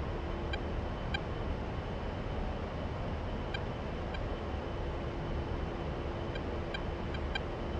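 A jet engine roars steadily inside the cockpit.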